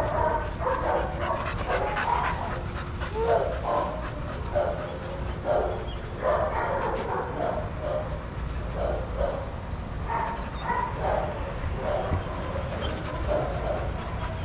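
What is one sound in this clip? Dogs pant loudly close by.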